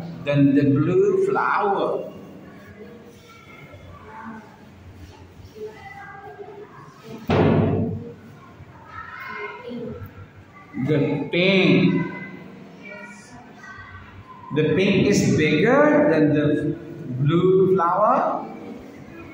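A young boy speaks up close, answering in short bursts.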